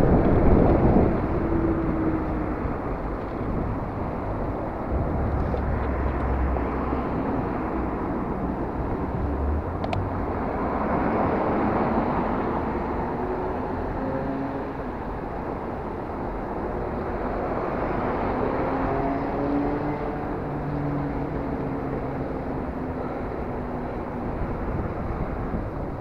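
Road traffic hums and passes nearby.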